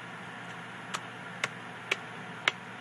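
A small child taps on laptop keys, making sharp clicks.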